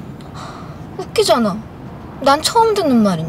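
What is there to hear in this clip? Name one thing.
A young woman speaks close by in a startled, anxious voice.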